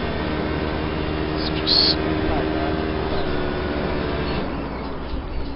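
A racing car engine roars steadily at high speed.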